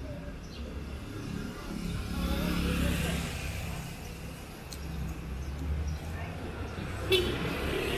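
A motorcycle passes by with a buzzing engine.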